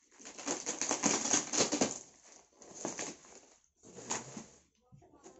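Plastic sacking rips and rustles as it is torn open.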